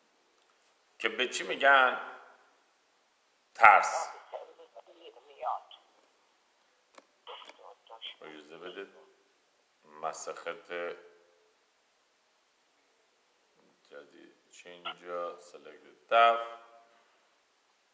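A middle-aged man speaks calmly, close to the microphone, with pauses.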